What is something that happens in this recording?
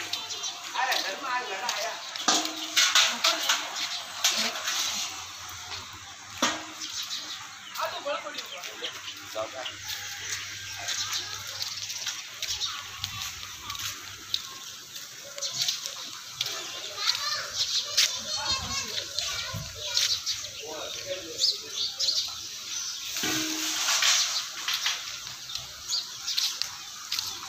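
Sheep hooves shuffle on paving stones.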